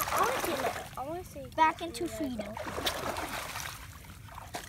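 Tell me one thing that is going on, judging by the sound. Water splashes as a net is lifted from shallow water.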